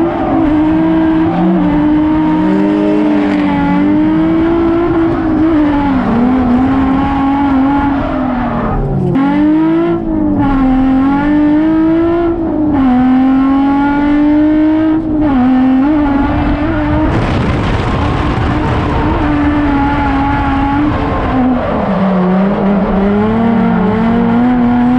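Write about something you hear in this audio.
A car engine roars loudly, revving up and down throughout.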